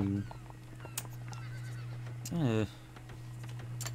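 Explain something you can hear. Poker chips clink onto a table.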